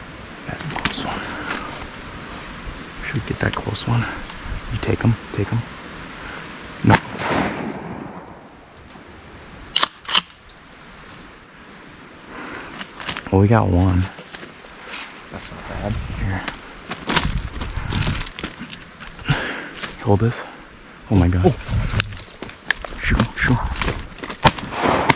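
Dry reeds rustle and crackle as someone pushes through them.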